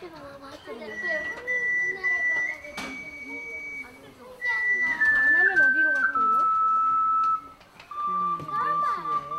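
An ensemble of ocarinas plays a slow, held melody in a hall.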